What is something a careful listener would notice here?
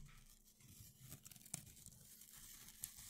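Boots crunch on dry pine needles.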